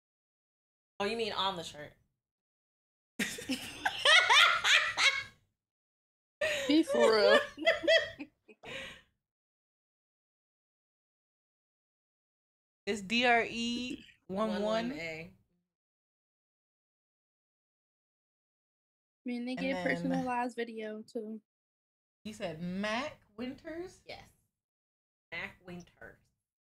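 Two young women talk and laugh close to a microphone, in bursts with pauses.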